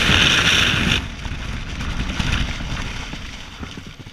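A parachute canopy flaps and snaps open overhead.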